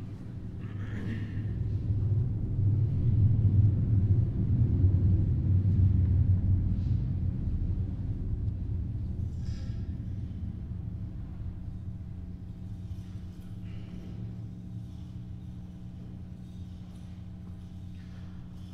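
A man chants in a low, steady voice in a large echoing hall.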